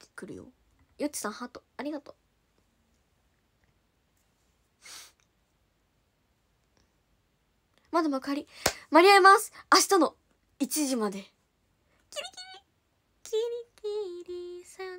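A young woman speaks playfully and animatedly into a nearby microphone.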